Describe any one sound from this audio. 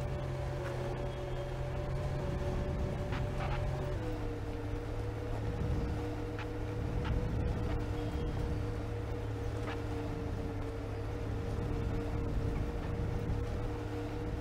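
A bus engine hums steadily, then drops in pitch as the gear changes.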